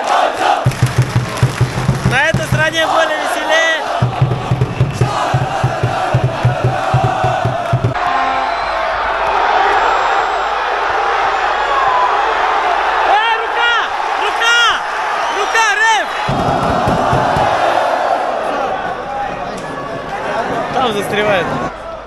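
A large crowd of fans chants and cheers loudly in a stadium.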